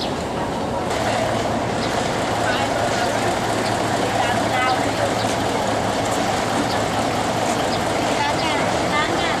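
Women chat nearby outdoors.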